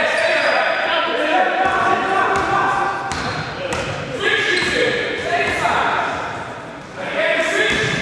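Young players shout and call out in a large echoing hall.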